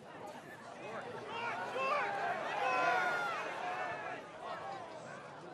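A crowd of spectators cheers loudly and then fades.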